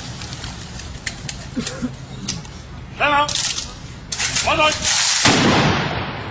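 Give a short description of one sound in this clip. A group of soldiers clatter their rifles outdoors.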